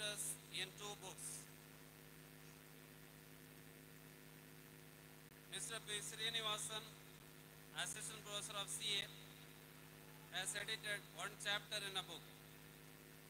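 A man speaks into a microphone over loudspeakers, announcing in short bursts.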